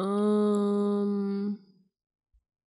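A young woman sings a long held note close into a microphone.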